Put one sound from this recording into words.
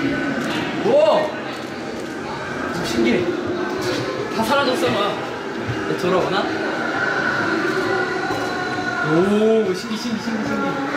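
A young man exclaims in amazement, close by.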